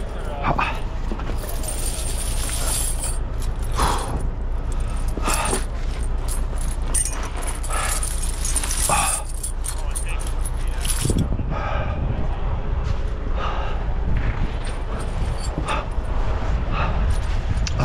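Metal tire chains clink as they are handled.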